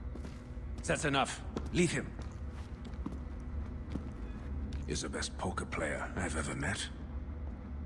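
A middle-aged man speaks calmly and gruffly.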